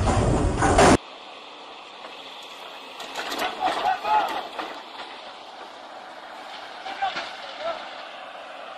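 An excavator engine rumbles outdoors.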